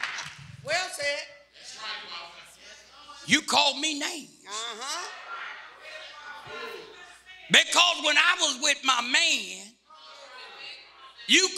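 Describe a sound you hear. An elderly man preaches with animation into a microphone.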